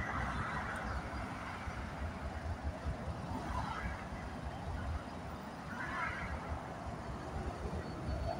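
Cars whoosh past on a nearby road.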